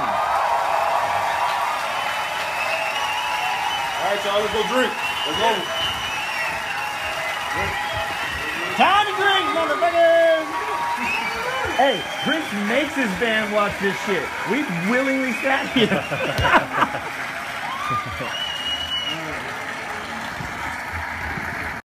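A large crowd cheers and chatters loudly in an echoing hall.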